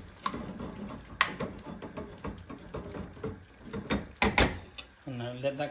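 A metal spoon clinks and scrapes against a pan.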